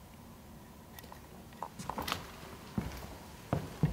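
Footsteps knock on a hard floor close by.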